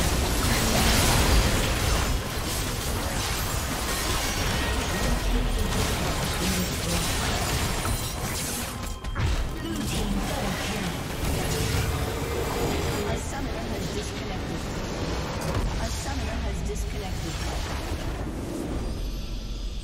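Spells and attacks crash and clash in a game battle.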